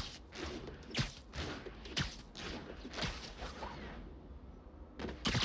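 Footsteps thud quickly in a steady rhythm.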